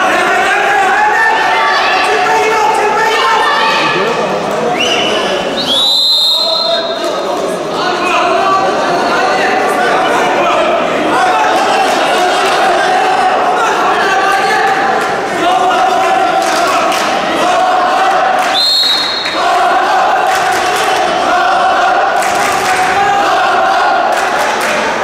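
A large crowd chants and cheers in an echoing hall.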